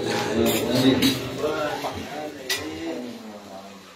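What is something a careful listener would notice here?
A frame drum is struck with hands.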